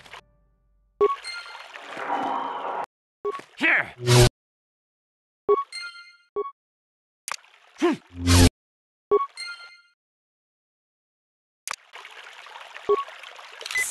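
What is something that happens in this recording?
Game menu beeps and chimes sound.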